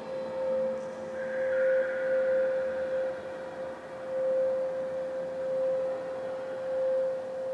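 Electronic music with a steady droning tone plays through loudspeakers.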